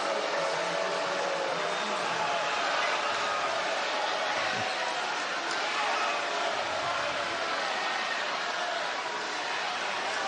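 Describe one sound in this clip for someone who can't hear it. An arena crowd murmurs and cheers in a large echoing hall.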